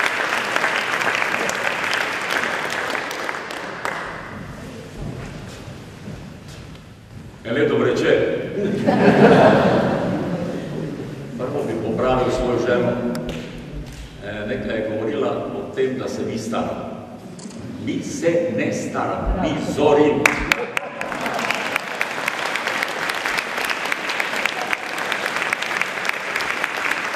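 An audience applauds in a large echoing hall.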